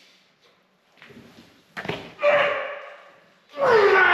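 Heavy weight plates clank against a metal rack.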